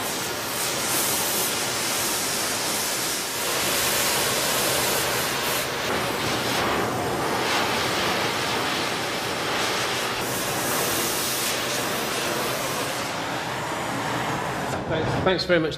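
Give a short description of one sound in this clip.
A gas torch flame roars and hisses steadily.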